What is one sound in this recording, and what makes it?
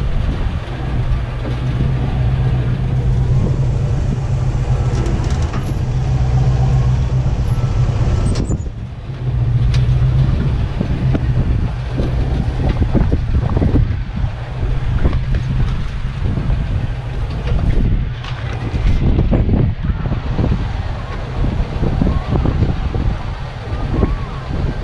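An engine rumbles steadily at low revs as a vehicle crawls over rough ground.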